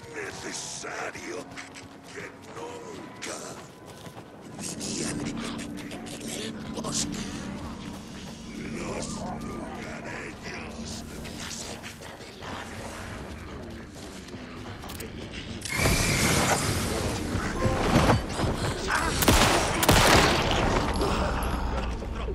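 Footsteps crunch along a gravel path.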